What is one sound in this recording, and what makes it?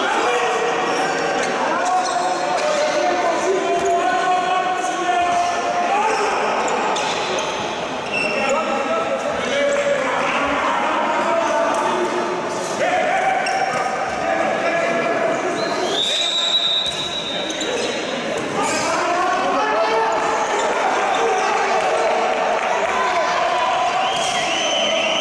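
A crowd of spectators chants and shouts in a large echoing hall.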